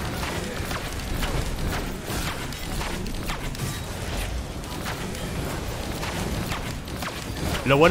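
A blade swings through the air with quick whooshes.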